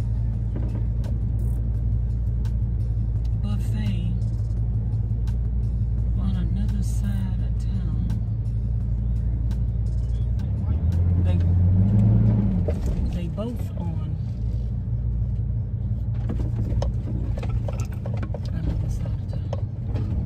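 A car engine hums steadily inside a moving vehicle.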